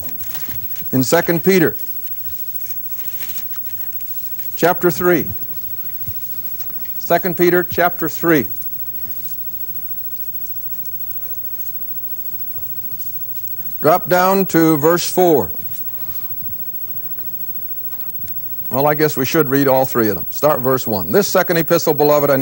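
An elderly man speaks calmly through a microphone, in short phrases with pauses.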